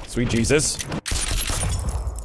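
A gunshot cracks once.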